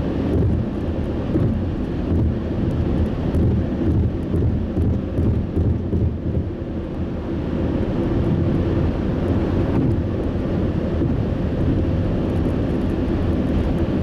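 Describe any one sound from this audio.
A car hums steadily as it drives along a road.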